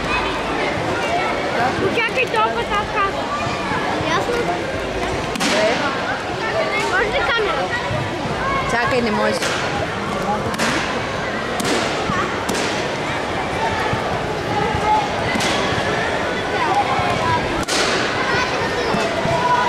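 A crowd of children and adults chatters throughout a large echoing hall.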